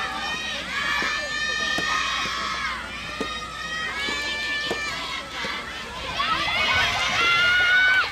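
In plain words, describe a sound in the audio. Young women cheer and call out loudly in high voices from nearby.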